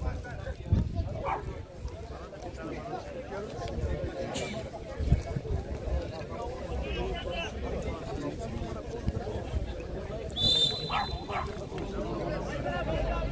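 Young men shout to each other from a distance outdoors.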